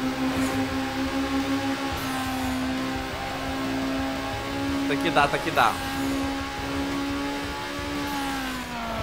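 A racing car engine drones steadily at high speed.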